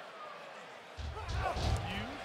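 A body thuds heavily on the ring canvas.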